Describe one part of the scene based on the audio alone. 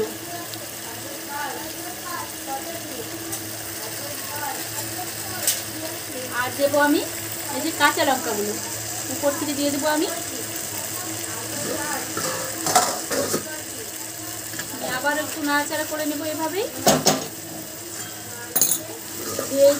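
A thick sauce bubbles and simmers gently in a pot.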